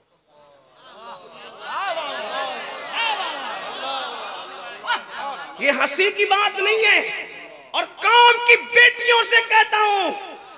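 A man chants and preaches passionately into a microphone, heard through loudspeakers with echo.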